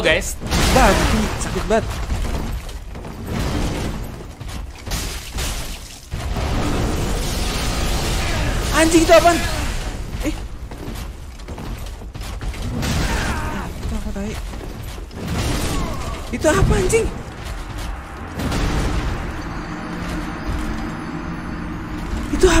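Metal weapons clang and slash in a game fight.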